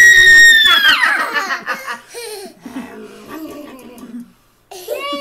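A toddler laughs and squeals excitedly close by.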